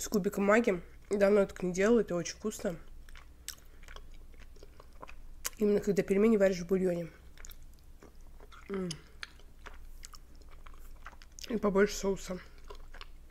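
A young woman chews food wetly close to a microphone.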